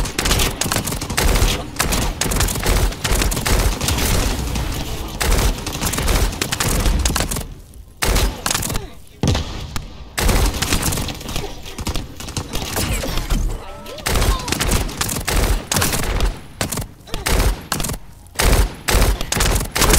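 Bullets hit metal with sharp impacts.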